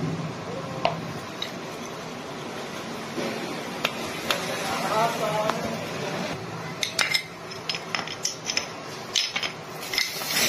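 Metal parts clink and tap as they are handled.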